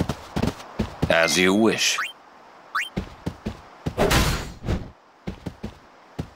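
A sword slashes with a heavy whoosh.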